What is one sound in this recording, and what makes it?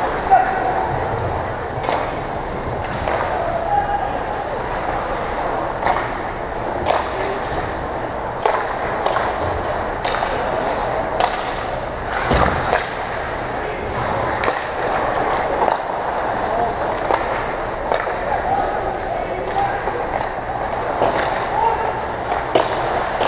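Ice skates scrape and carve across the ice in a large echoing rink.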